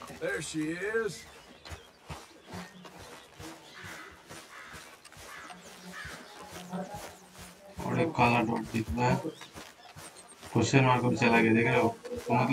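Footsteps walk through grass.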